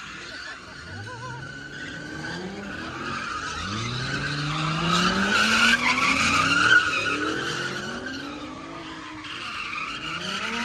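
Car engines rev hard, rising and falling in pitch.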